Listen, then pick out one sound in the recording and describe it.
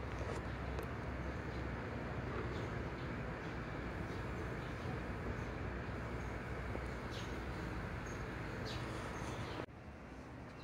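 An electric fan whirs steadily close by.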